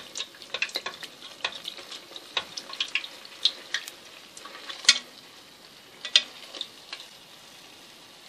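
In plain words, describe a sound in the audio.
A fork taps and scrapes against a metal pot.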